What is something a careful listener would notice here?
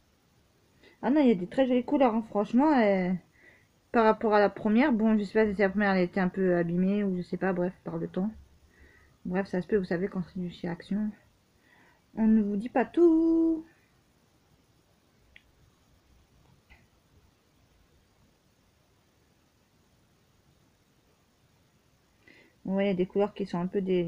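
A woman talks calmly and close by, with pauses.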